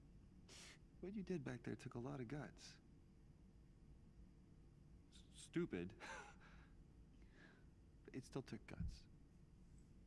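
A man speaks calmly and warmly, close by.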